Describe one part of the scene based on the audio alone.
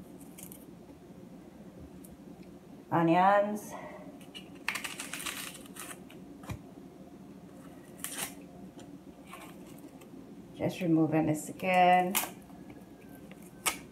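Pieces of food are set down in a glass dish with soft taps.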